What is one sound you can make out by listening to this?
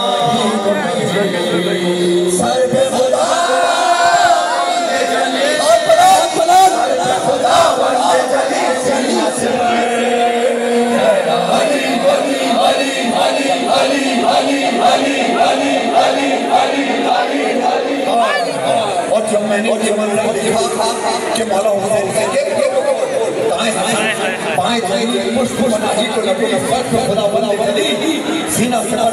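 A man chants loudly through a microphone over loudspeakers in a large echoing hall.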